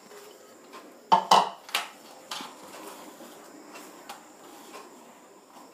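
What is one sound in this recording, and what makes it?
Fingers rub and stir flour in a metal bowl.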